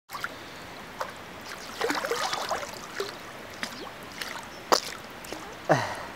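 Water splashes and sloshes around people wading.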